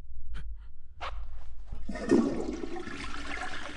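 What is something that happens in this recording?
A man's footsteps sound on a hard floor.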